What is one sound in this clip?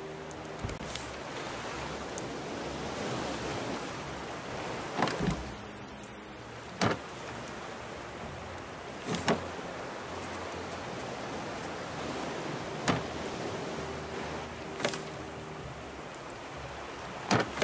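Sea water laps gently and steadily.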